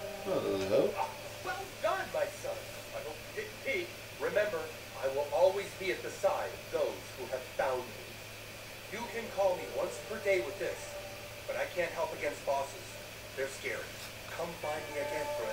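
A man speaks calmly in a cartoon voice.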